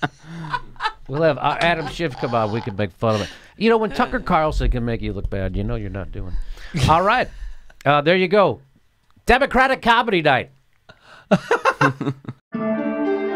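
A middle-aged man talks with animation into a close microphone.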